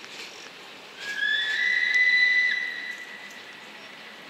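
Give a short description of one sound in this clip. A train horn sounds a long two-tone blast.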